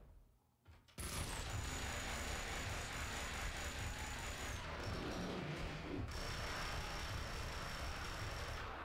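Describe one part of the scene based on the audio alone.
Submachine guns fire in rapid, continuous bursts.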